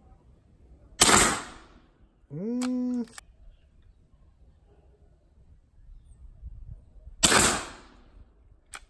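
An air rifle fires with a sharp crack, twice.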